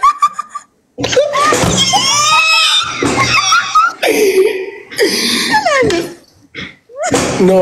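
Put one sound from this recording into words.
A young man laughs loudly over an online call.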